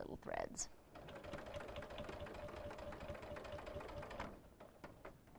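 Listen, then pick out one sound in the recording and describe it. A sewing machine runs with a steady, fast whirring hum.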